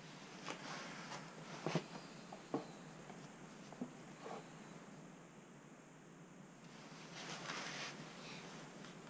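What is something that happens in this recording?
Hands knock and tap against wood and plastic close by.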